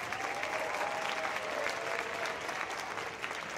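A concert band holds a final chord in a large hall.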